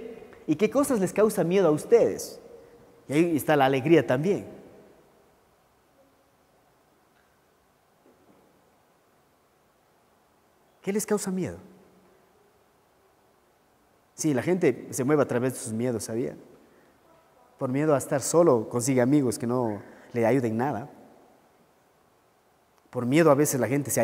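A man speaks calmly through a microphone, with pauses.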